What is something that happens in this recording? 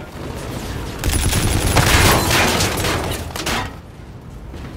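Rapid gunfire crackles loudly in a burst.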